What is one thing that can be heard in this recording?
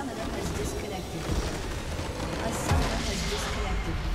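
A large crystal structure explodes with a rumbling, shattering blast.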